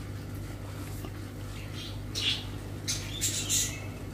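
A young woman chews and smacks her lips close up.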